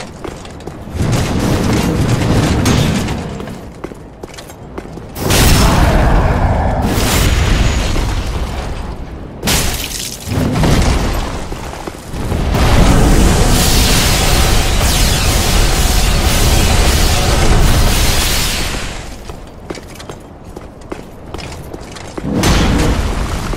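Heavy weapon blows clang and thud in a fight.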